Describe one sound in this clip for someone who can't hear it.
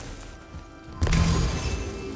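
A heavy blow lands with a sharp crack.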